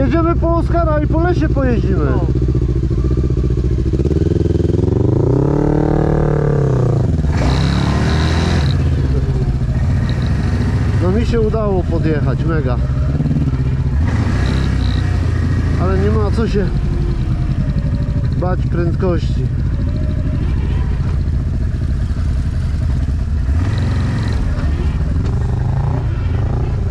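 A quad bike engine drones up close and revs up and down.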